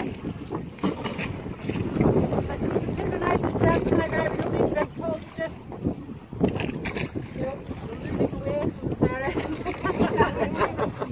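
Women talk and laugh together close by, outdoors in wind.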